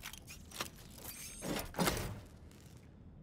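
Metal parts clink and scrape as a device is unscrewed.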